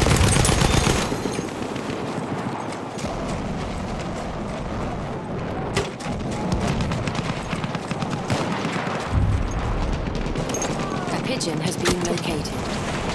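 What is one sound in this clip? Scattered gunshots crack in the distance.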